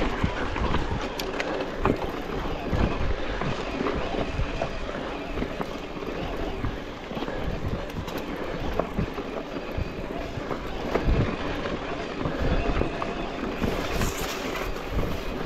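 A bicycle frame clatters and rattles over bumps.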